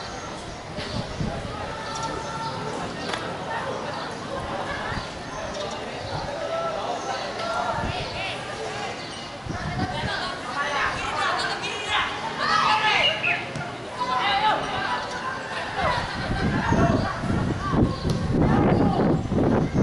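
Young men shout to each other across an open field in the distance.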